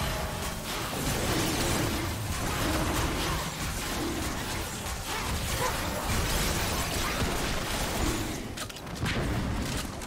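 Magic spells crackle and thud in a busy fight.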